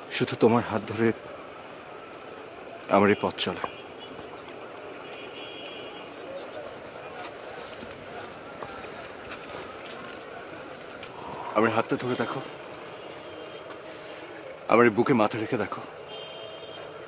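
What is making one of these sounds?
A young man speaks close by in a pleading, emotional voice.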